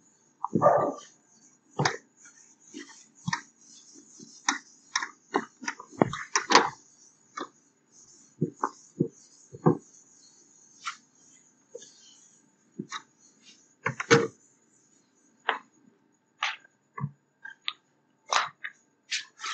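A duster rubs and squeaks against a whiteboard in short strokes.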